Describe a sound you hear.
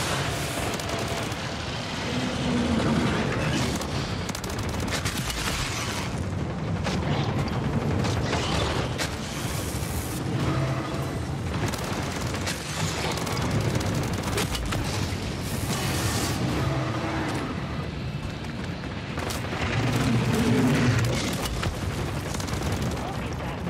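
Explosions boom from a video game.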